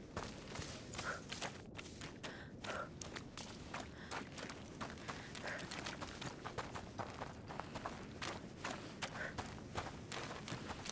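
Footsteps run quickly over a wooden floor.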